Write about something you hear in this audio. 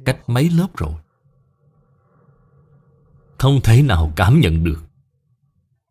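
An elderly man speaks calmly and slowly into a microphone, with pauses.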